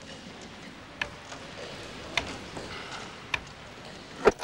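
Game stones click onto a wooden board.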